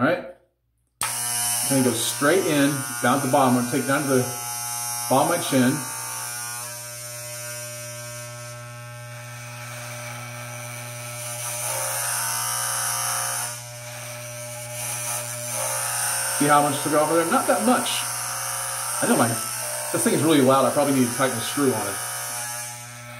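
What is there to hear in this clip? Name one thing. An electric hair clipper hums steadily.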